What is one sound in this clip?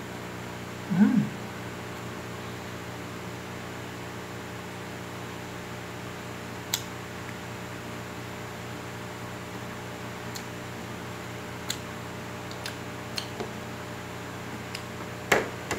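A man chews and smacks his lips while eating.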